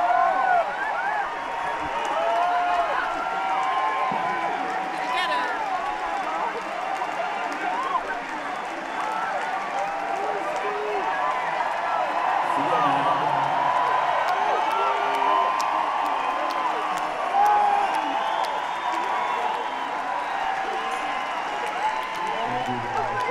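A large crowd screams and cheers loudly throughout.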